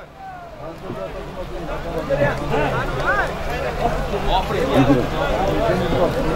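A large crowd of men shouts and chatters outdoors at a distance.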